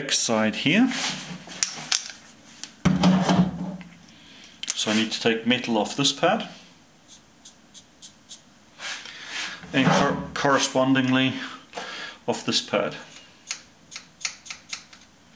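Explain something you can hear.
Metal parts click and clink as they are handled.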